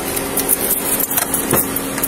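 Keys jingle in a hand.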